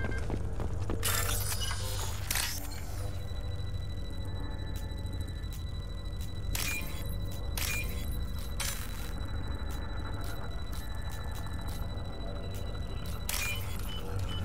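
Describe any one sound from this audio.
Short electronic beeps and clicks sound one after another.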